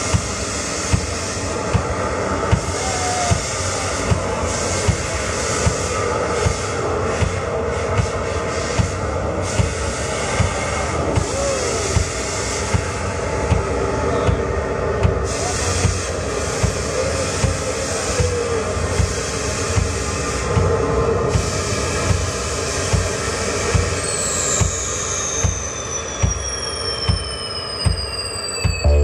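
A woman sings into a microphone through loudspeakers.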